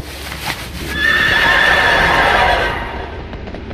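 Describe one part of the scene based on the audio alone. A shimmering magical whoosh swells and fades as a winged mount takes flight.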